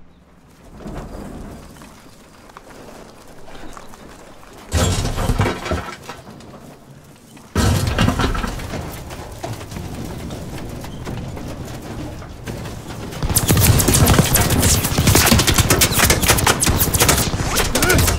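A truck engine rumbles while driving over rough ground.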